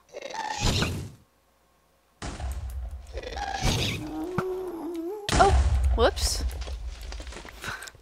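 A ghostly creature lets out high, wailing cries.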